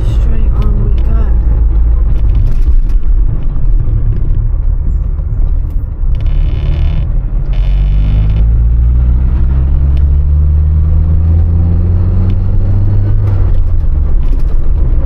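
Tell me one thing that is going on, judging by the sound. A car engine hums steadily, then revs up as the car speeds up.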